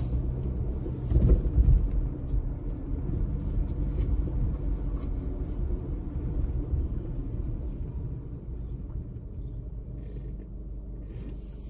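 A car engine hums low as the car rolls along a paved street.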